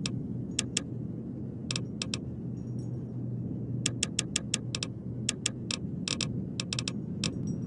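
Short, sharp menu clicks tick again and again in quick bursts.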